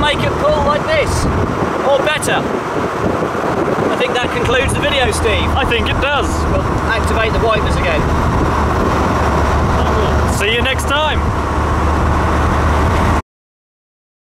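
A car engine drones steadily while driving.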